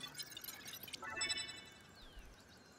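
A bright chime rings out and fades.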